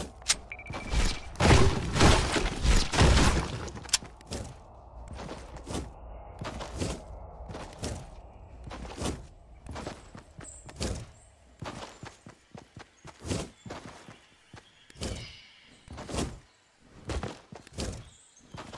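Footsteps thud quickly on grass as a game character runs.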